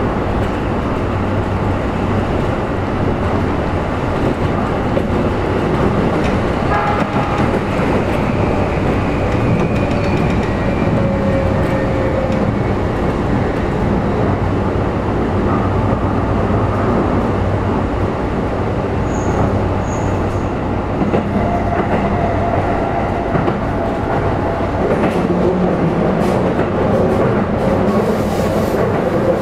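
A train rolls along the rails with a steady low rumble.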